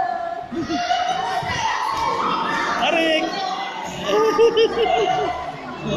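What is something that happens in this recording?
Women laugh and cheer nearby.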